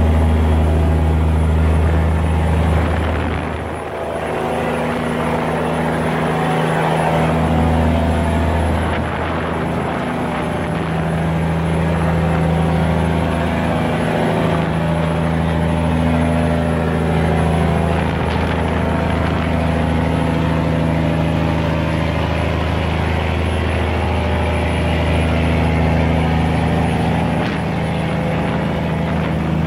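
A boat engine rumbles loudly and steadily nearby.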